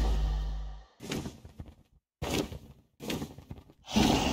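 A dragon growls and roars.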